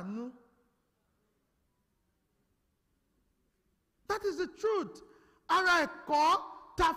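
A man speaks with feeling into a microphone in an echoing hall.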